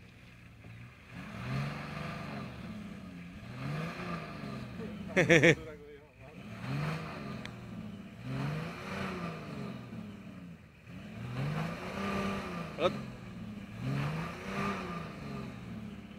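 A truck engine revs up and down again and again, close by.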